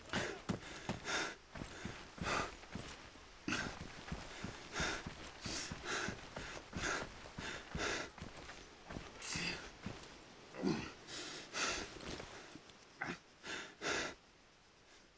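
Footsteps rustle through dry grass at a steady walking pace.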